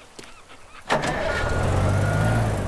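A heavy crane truck's engine rumbles.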